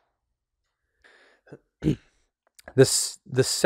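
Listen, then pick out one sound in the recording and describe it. A second man speaks calmly close to a microphone.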